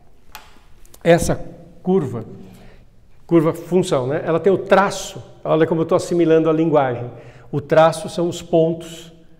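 An older man speaks calmly and clearly, as if lecturing.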